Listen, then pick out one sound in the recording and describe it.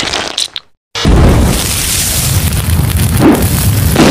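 A small flame crackles.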